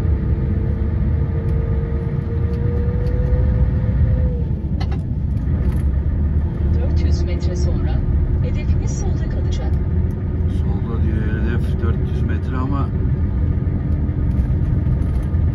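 A bus engine rumbles low and steady, heard from inside.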